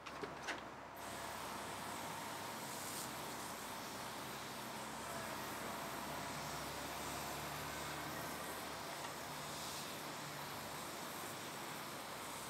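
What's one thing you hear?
Water sprinkles steadily onto soil.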